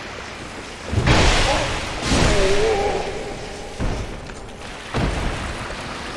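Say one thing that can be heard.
A magic spell blasts out with loud whooshing bursts.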